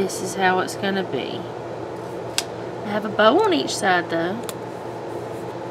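Paper rustles softly as a sticker is peeled and pressed onto a page.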